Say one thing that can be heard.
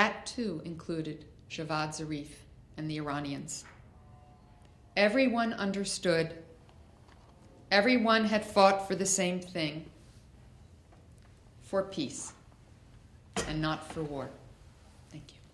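An older woman speaks calmly into a microphone, with pauses.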